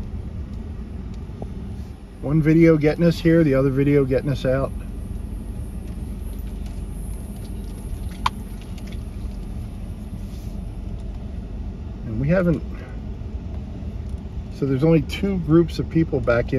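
Tyres crunch softly on a sandy gravel road.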